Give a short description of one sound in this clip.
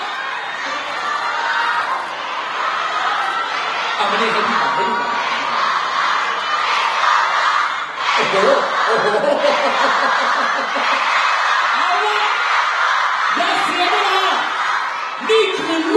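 A crowd of young fans screams and cheers loudly.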